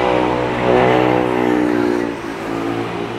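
A car engine hums as it passes close by.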